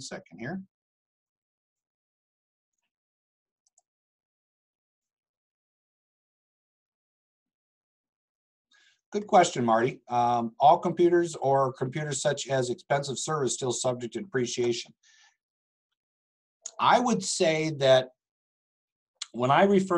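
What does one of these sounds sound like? An older man speaks calmly and closely into a microphone, with pauses.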